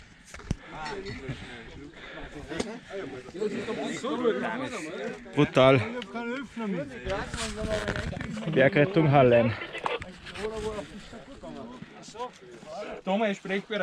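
Several people chat and call out in the background outdoors.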